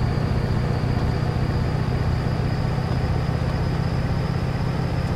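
A truck engine rumbles steadily while driving.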